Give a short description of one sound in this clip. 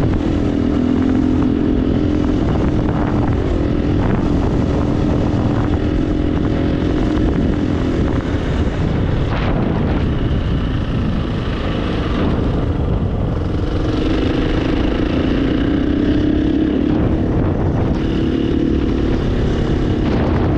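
A dirt bike engine roars steadily, rising and falling as it revs.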